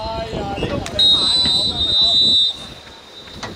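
A referee's whistle blows one long, shrill blast.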